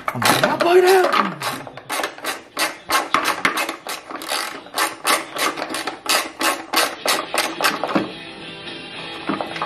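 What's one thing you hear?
A socket wrench ratchets with quick clicks.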